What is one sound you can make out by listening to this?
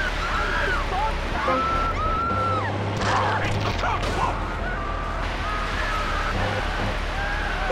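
A water cannon sprays with a hissing rush.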